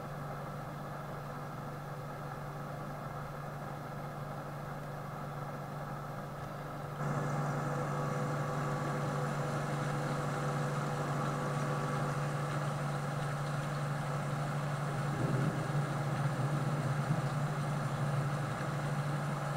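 A large harvester engine drones steadily, muffled at first and then louder.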